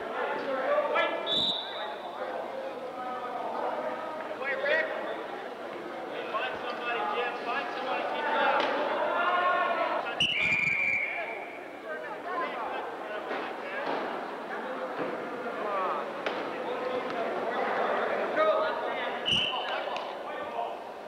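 Many men and women call out and talk in a large echoing hall.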